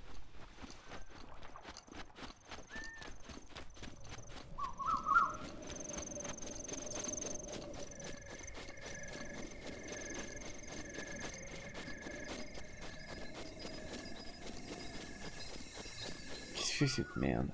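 Quick footsteps run across soft ground.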